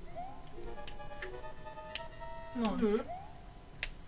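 Chiptune video game music plays.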